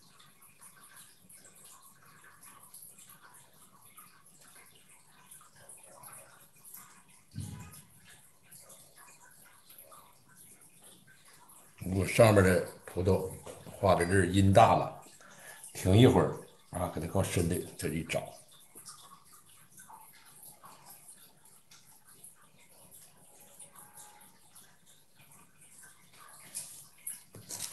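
A brush dabs softly on paper.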